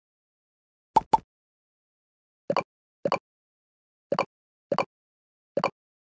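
Game balls pop with short, bright tones.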